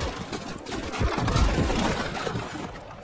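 A rifle fires nearby.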